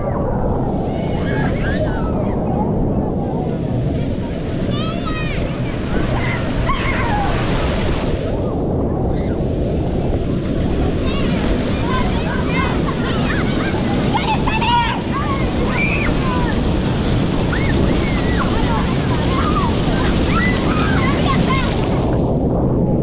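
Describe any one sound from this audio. Children shout and squeal playfully nearby.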